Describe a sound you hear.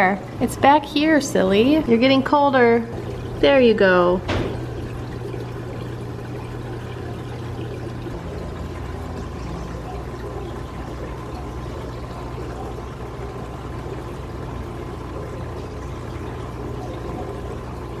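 Water bubbles softly in an aquarium.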